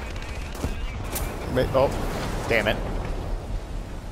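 A tank's ammunition explodes with a loud blast.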